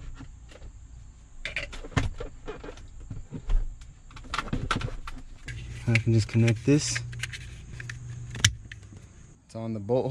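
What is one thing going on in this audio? Plastic parts click and rattle.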